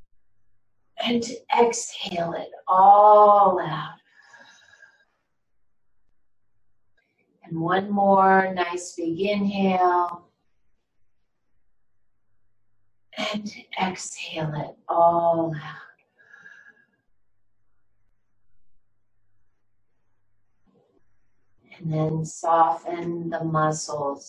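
An elderly woman speaks calmly and slowly in bursts, close by, with pauses between.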